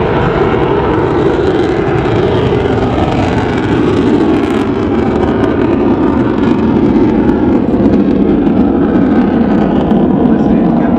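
A jet engine roars loudly overhead in a steady rumble.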